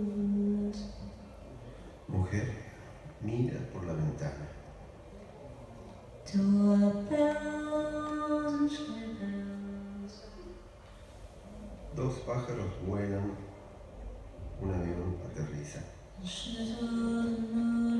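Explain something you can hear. A man plays a keyboard.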